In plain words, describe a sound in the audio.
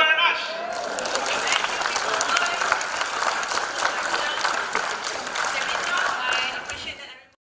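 A middle-aged man speaks through a microphone in a large hall.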